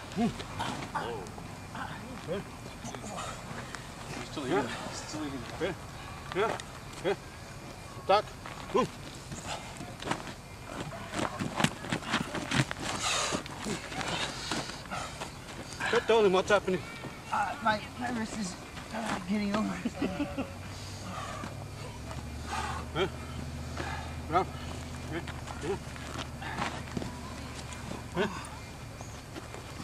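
Men and women chat and laugh nearby outdoors.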